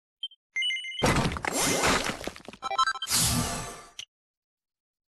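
A bright magical whoosh swells and shimmers, then fades.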